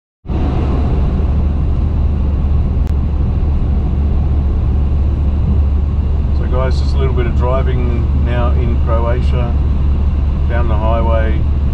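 A car drives steadily along a highway with a low, constant road rumble.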